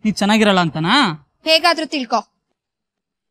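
A young woman speaks with emotion close by.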